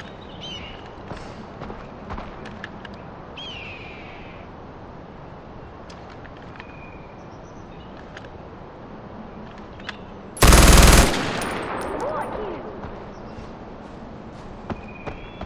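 Birds chirp now and then in the distance.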